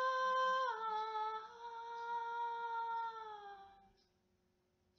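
A young woman sings a long, sustained note close by, which slides down slightly and fades out.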